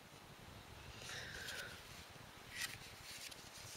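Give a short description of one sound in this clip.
A stiff paper page rustles softly as it is turned.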